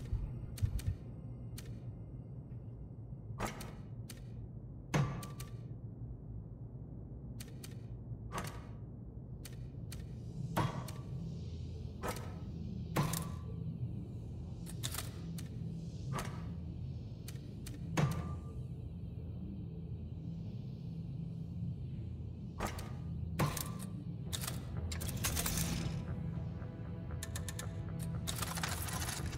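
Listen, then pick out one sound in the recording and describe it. Soft interface clicks sound now and then as menus open and close.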